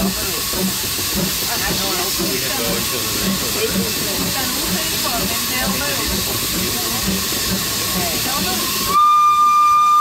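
A steam train chugs along with a steady, even rhythm.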